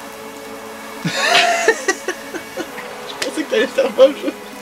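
A middle-aged man laughs loudly.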